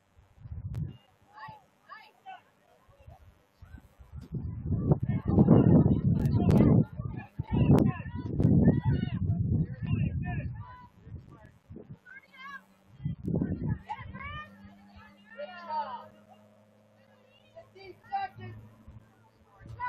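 Young women shout to each other across an open field, faint and far off.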